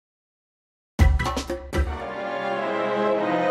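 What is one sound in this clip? An orchestra plays in a large hall.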